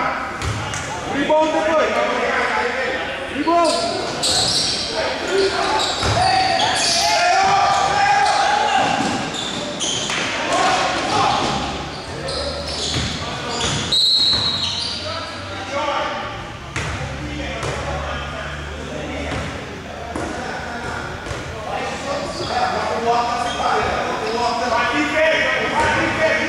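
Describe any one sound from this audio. Young men shout to each other across an echoing hall.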